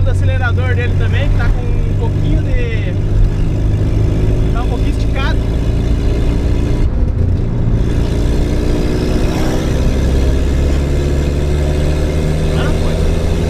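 A car engine hums steadily from inside the cab while driving.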